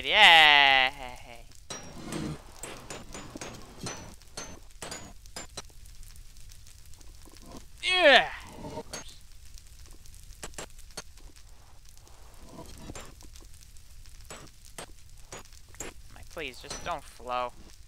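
A pickaxe knocks repeatedly against stone blocks.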